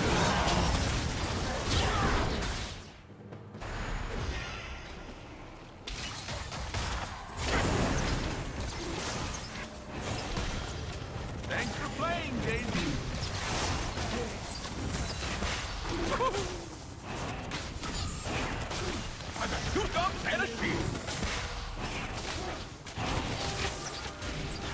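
Game spell effects whoosh and crackle in quick bursts.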